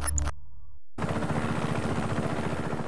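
A helicopter's rotor thuds close by.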